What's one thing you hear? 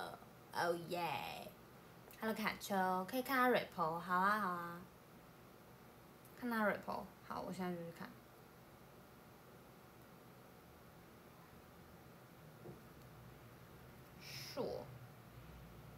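A young woman speaks playfully in a high voice close by.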